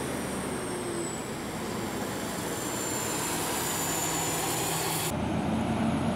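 A large vehicle's engine rumbles as it drives slowly past.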